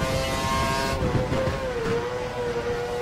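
A Formula One car's V8 engine drops in pitch as it downshifts under braking.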